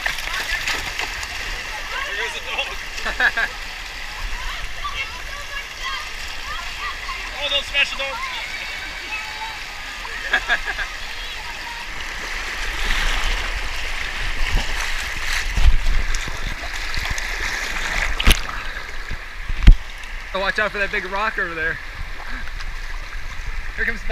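Water rushes and splashes over rocks in a shallow stream.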